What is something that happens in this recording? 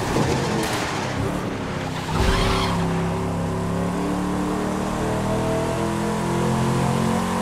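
Tyres roll on smooth pavement.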